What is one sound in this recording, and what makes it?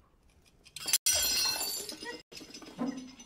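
A woman throws banknotes down onto a floor with a loud burst.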